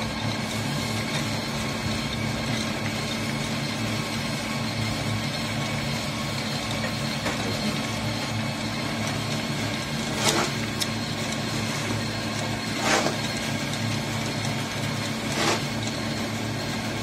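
A machine hums and rumbles steadily nearby.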